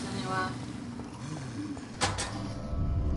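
A gunshot cracks with a short echo.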